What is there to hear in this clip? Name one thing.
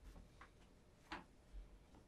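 A fingertip taps on a metal tin.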